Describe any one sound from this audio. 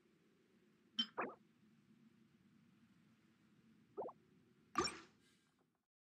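Short game menu chimes sound as menus open.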